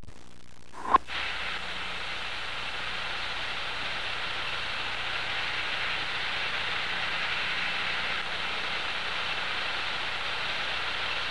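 Shaving foam hisses steadily out of a spray can.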